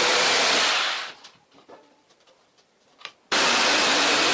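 A gloved hand brushes sawdust off a board.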